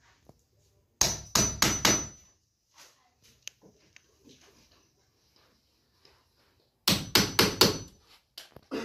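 A hammer taps sharply on metal in quick bursts.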